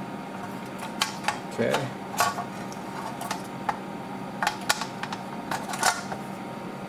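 A metal cover clicks and knocks as it is fitted into place.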